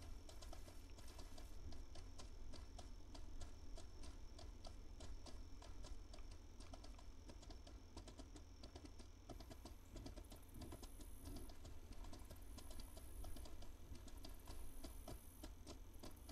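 Hooves thud rhythmically on soft ground as an animal trots.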